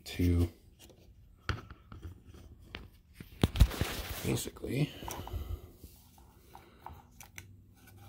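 Plastic parts click and knock as fingers handle them up close.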